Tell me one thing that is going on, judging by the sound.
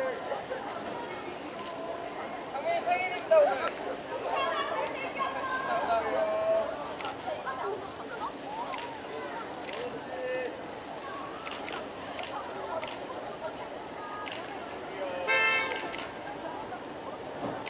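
A crowd of young women screams and cheers outdoors.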